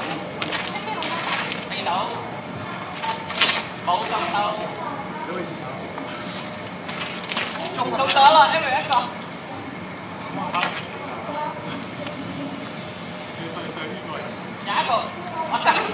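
Young men shout out over the sparring.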